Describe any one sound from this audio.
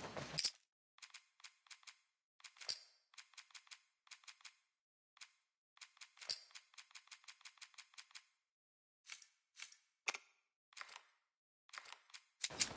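Menu clicks tick sharply and quickly.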